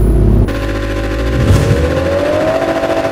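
A car engine revs up sharply.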